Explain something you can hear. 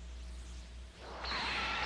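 A sword scrapes as it is drawn from its sheath.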